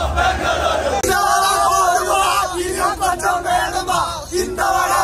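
Young men shout and cheer close by outdoors.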